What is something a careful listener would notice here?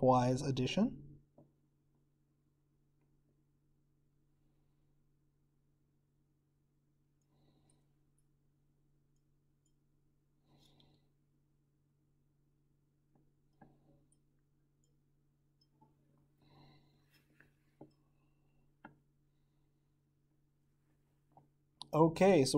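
Liquid swirls and sloshes softly in a glass flask.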